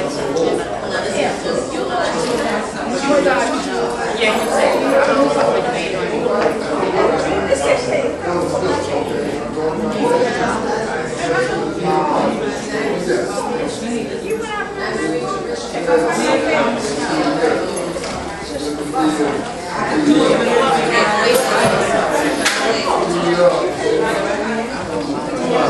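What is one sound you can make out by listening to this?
Several men and women talk and murmur together in a large echoing hall.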